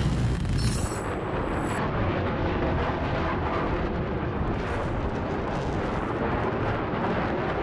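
A jet engine roars as a plane flies past.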